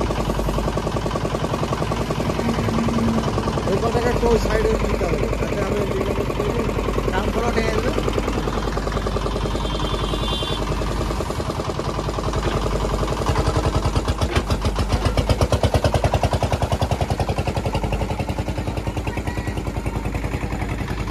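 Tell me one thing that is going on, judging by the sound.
A digger bucket scrapes and scoops through soil and roots.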